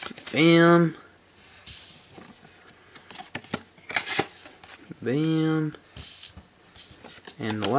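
Stiff cards slide and rustle against each other in hands.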